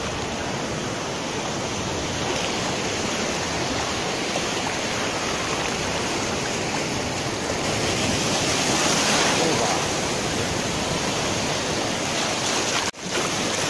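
Waves wash and break in a steady rush, outdoors.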